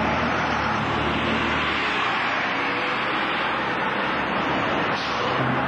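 A bus engine rumbles as a bus drives past close by.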